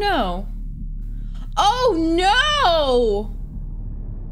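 A young woman exclaims loudly and excitedly, close to a microphone.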